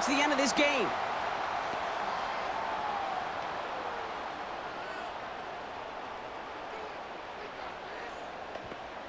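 A large crowd roars steadily in a stadium, slowly fading.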